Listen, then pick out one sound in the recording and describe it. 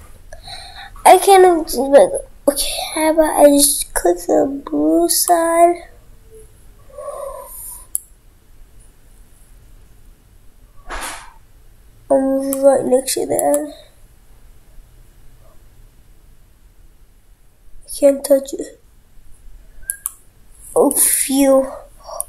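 A young boy talks with animation close to a microphone.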